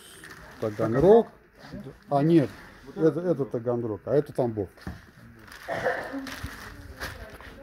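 Plastic wrap rustles and crinkles.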